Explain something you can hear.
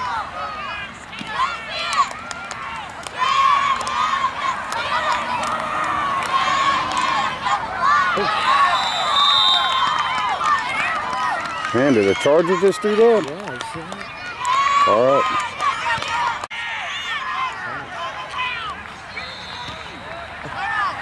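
Children shout and cheer at a distance outdoors.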